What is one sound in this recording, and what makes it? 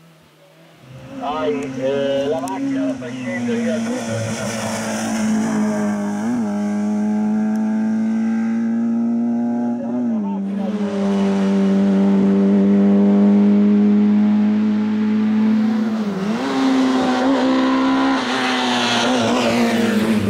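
A racing car engine screams close by, dropping and climbing in pitch with gear changes.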